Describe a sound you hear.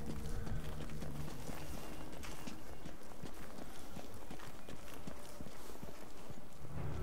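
Footsteps crunch over debris on a hard floor.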